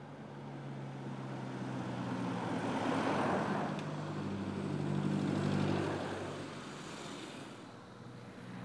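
A car drives past close by, its engine rising and then fading away.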